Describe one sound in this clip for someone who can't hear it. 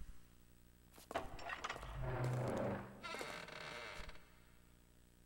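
A heavy stone door grinds and rumbles open.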